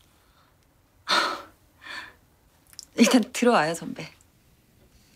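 A young woman speaks softly and cheerfully, close by.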